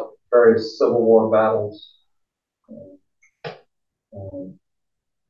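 An adult man speaks in short phrases through an online call.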